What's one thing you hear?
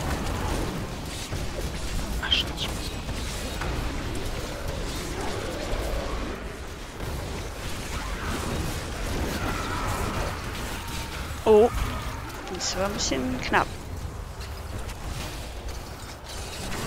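Magic blasts and explosions crackle and boom in quick succession.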